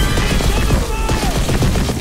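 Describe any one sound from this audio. An electric blast crackles and buzzes loudly.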